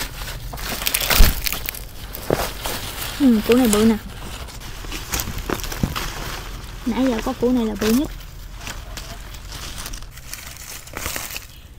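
Fingers scrape and crumble dry soil close by.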